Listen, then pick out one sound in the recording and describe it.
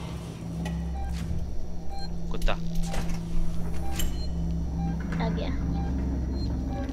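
A motion tracker beeps softly at a steady pace.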